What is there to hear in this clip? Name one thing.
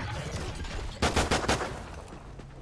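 A pistol fires several quick, sharp shots.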